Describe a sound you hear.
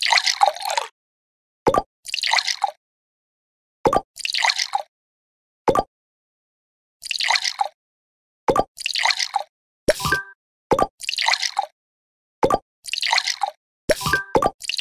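Liquid glugs as it pours from one tube into another.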